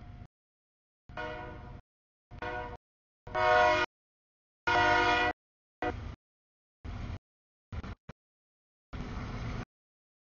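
A freight train rumbles past.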